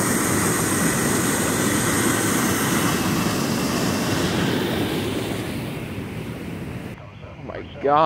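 Water rushes and churns loudly over a weir, then fades into the distance.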